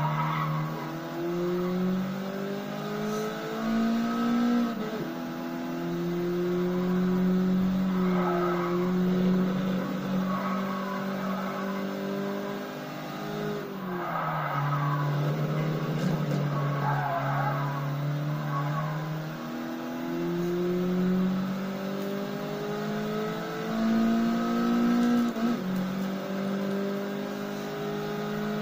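A racing car engine revs high and shifts through gears from a television speaker.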